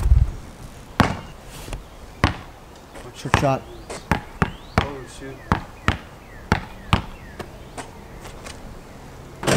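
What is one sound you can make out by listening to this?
A basketball bounces on concrete in quick rhythm.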